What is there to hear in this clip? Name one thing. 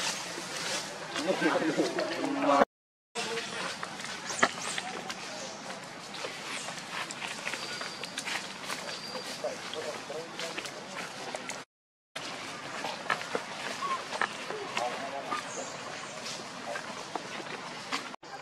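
Dry leaves rustle under walking monkeys.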